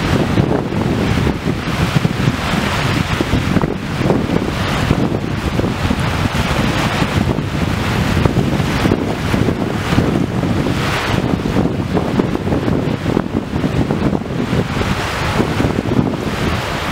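Small waves wash onto a beach.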